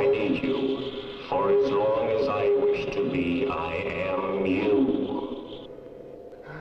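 A man sings loudly and with feeling, close by.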